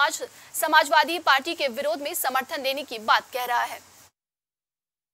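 A young man speaks loudly and with animation.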